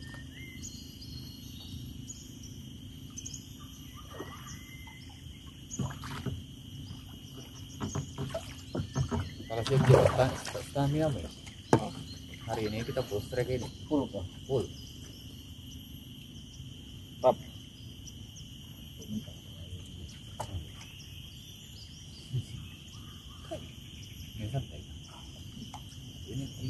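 Water laps softly against a small boat's hull.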